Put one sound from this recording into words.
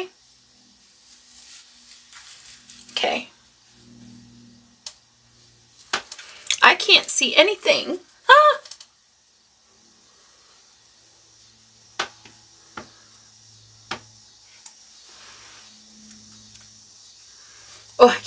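Hair rustles as a woman adjusts a wig.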